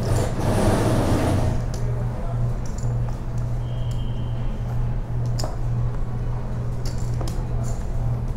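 Poker chips click and clatter against each other.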